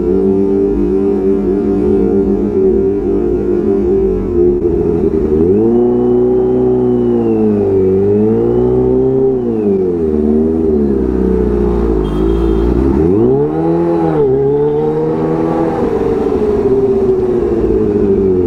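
A motorcycle engine rumbles close by, revving up and down as it rides.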